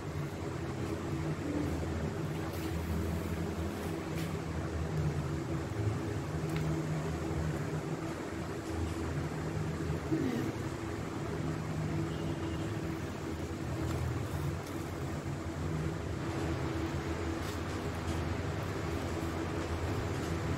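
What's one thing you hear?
Scissors snip through thin card.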